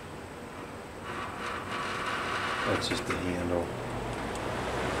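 A box fan whirs steadily.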